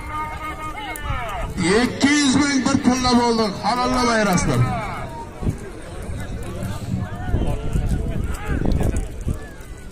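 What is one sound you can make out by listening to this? A large outdoor crowd of men shouts and murmurs.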